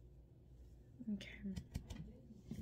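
A young woman speaks briefly and calmly, close to the microphone.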